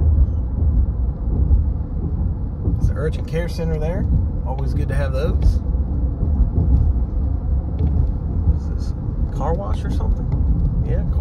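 A car's tyres rumble steadily on a paved road.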